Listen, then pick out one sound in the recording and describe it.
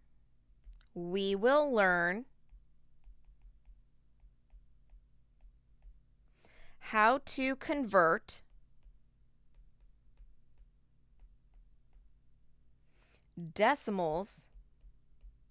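A woman speaks calmly in short phrases into a close microphone.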